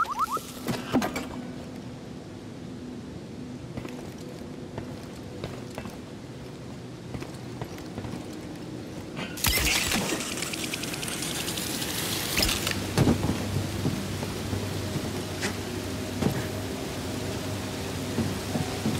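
Footsteps run across metal grating.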